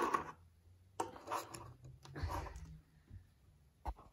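A small figure's base taps down on a table.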